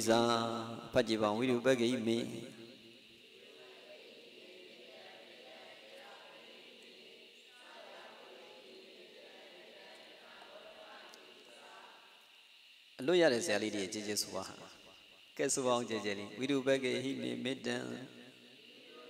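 A man speaks calmly into a microphone, close by.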